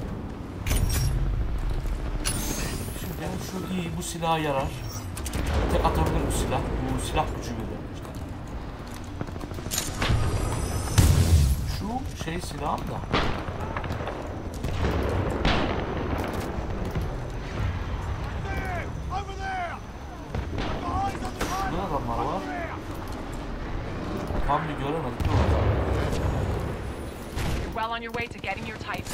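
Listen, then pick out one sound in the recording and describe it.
Guns fire in sharp, rapid shots.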